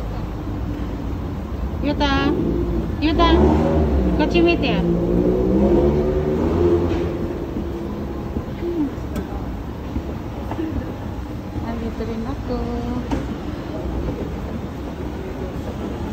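An escalator hums and rumbles steadily.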